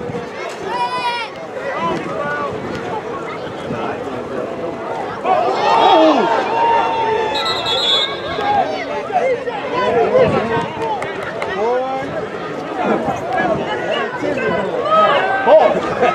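A crowd of spectators talks and cheers outdoors.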